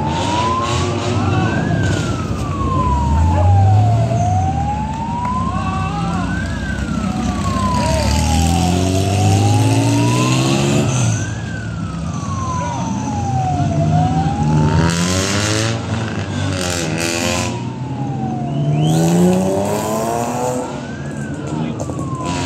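Rally car engines rev hard and roar up a hairpin bend one after another.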